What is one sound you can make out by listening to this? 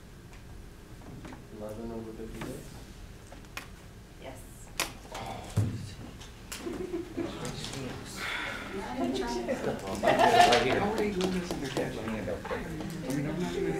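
A young woman speaks from a distance in an echoing room.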